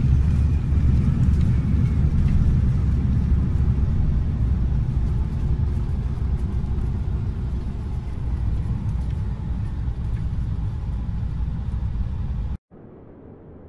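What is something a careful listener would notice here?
A jet engine rumbles and whines steadily close by.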